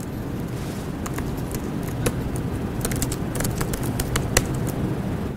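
Laptop keys click and clatter in quick taps.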